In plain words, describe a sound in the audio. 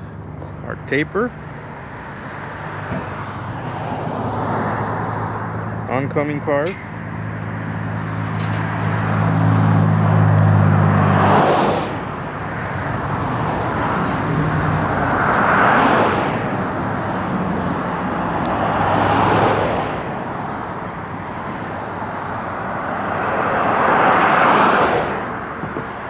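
Cars rush past close by on a busy road, their tyre noise swelling and fading.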